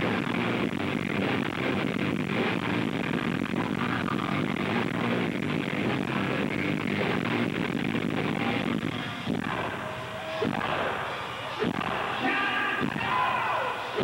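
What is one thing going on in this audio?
A man sings loudly into a microphone over a loudspeaker, in a large echoing space.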